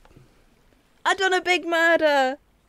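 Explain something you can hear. A young woman speaks in a high, sing-song voice close to a microphone.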